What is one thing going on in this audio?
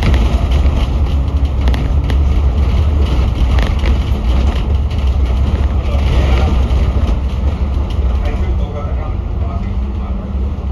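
Traffic hums along a city road outdoors.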